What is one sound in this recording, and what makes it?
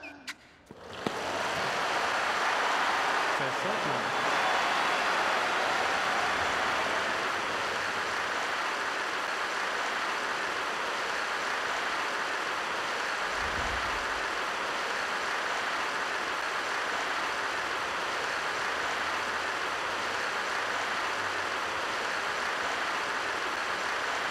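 A large crowd applauds steadily in a big arena.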